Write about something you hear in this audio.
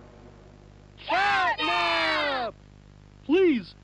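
Several high cartoon voices scream loudly together.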